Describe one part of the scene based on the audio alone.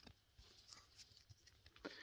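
Playing cards rustle in a young man's hands.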